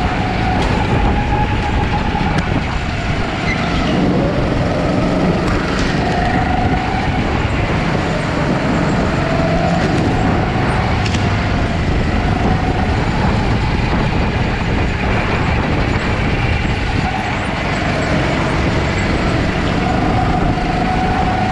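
Go-kart engines whine and buzz steadily close by.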